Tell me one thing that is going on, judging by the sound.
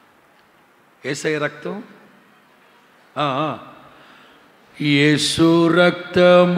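A middle-aged man preaches with animation into a microphone, in short bursts with pauses.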